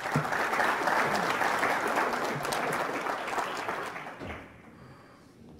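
An audience claps its hands.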